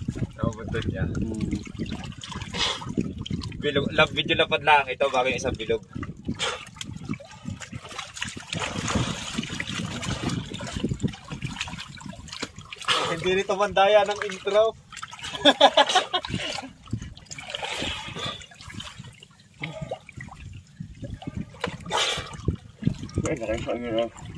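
Water splashes close by.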